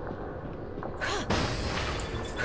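A magical burst flares with a whooshing boom.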